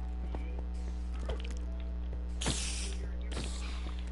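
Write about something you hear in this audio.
A spider hisses in a game.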